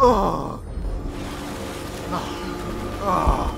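Water splashes as a swimmer breaks the surface.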